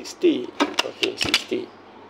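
A button clicks under a finger.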